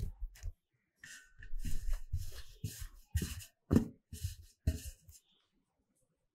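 A cloth rustles as it is spread over a metal plate.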